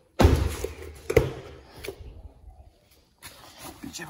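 A car door shuts with a thud.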